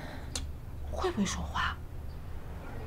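A young woman exclaims in surprise.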